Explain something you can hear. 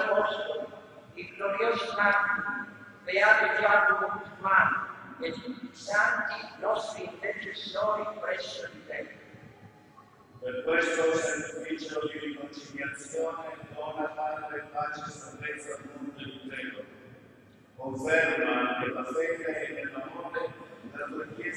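A man chants and speaks through a microphone in a large echoing hall.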